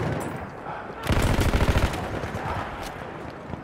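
A rifle fires in rapid bursts of sharp cracks.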